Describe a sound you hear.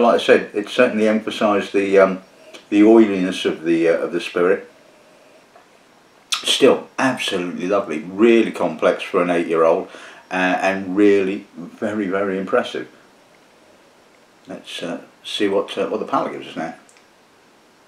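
A middle-aged man talks calmly and close to a microphone.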